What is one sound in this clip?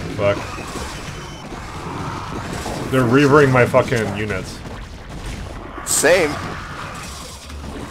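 Game weapons fire and blasts crackle in a battle.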